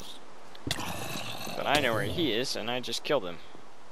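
A sword strikes a zombie with a dull thud.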